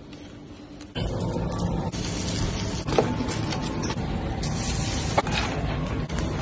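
Food sizzles in a pan while being stirred.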